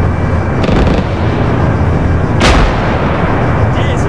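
A rocket whooshes overhead.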